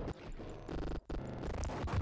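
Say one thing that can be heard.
A pistol fires a shot indoors.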